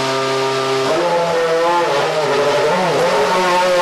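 A race car engine revs up and down as the car pulls away.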